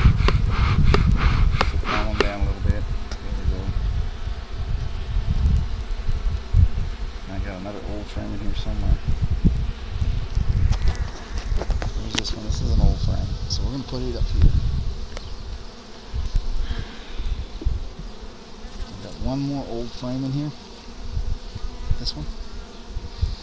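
Wooden hive frames scrape and knock as they are lifted out.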